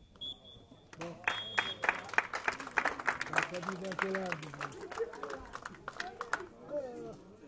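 Spectators clap and cheer nearby.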